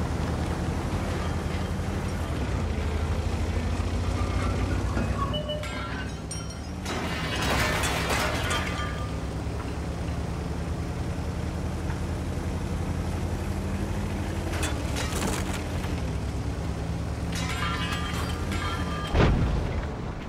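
A heavy tank engine rumbles steadily as the tank rolls along.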